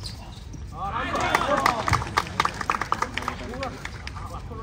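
A crowd of spectators cheers and shouts loudly.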